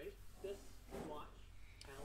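Cards shuffle and rustle in hands.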